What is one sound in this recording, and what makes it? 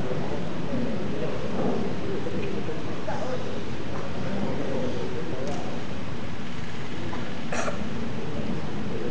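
A large group of people sings together in a large echoing hall.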